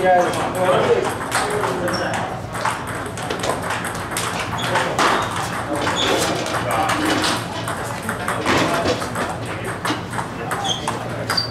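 Ping-pong balls click rapidly off paddles and tables.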